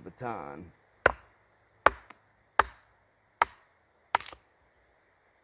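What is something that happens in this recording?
A wooden mallet knocks sharply on wood several times.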